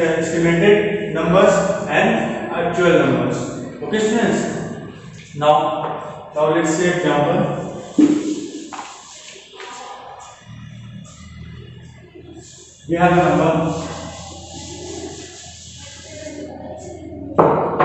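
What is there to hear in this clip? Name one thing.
A young man speaks clearly and steadily, as if teaching.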